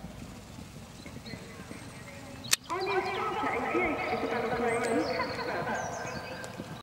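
A horse gallops across soft turf with dull hoof thuds.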